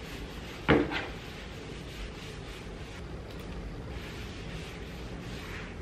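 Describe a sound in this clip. A cloth wipes across a tabletop.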